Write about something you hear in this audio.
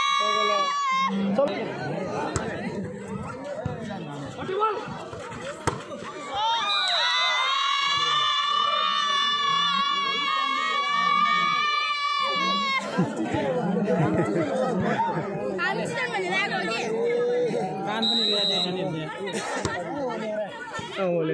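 A large crowd murmurs and chatters between cheers.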